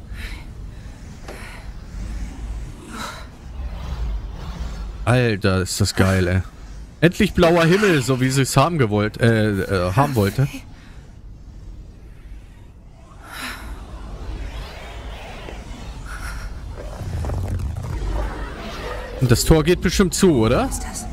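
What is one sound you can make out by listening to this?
A man talks close into a microphone.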